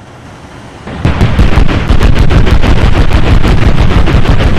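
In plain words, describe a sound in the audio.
A heavy explosion booms and rumbles loudly.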